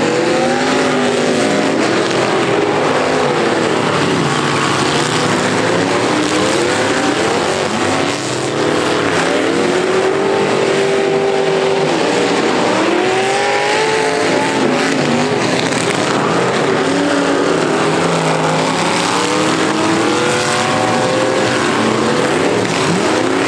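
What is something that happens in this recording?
Car engines roar and rev.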